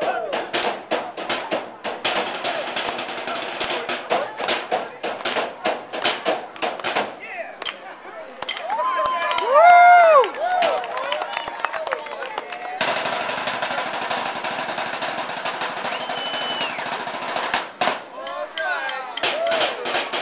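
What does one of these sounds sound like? Men drum fast rhythms with sticks on metal trash cans.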